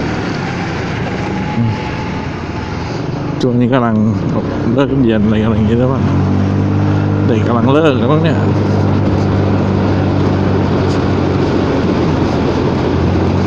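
A motorcycle engine hums steadily and rises as it speeds up.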